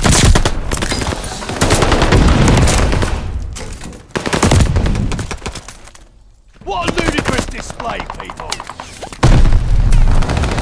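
A rifle fires a burst of rapid shots.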